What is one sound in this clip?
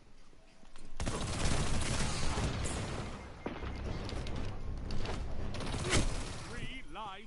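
Gunfire rattles and booms in rapid bursts.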